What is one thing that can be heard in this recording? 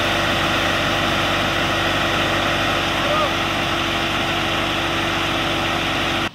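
Water gushes from a hose into a tank.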